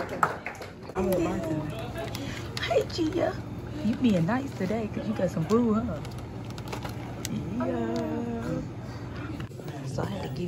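A woman talks and laughs cheerfully up close.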